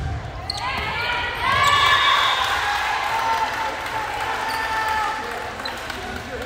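A crowd cheers and shouts after a point.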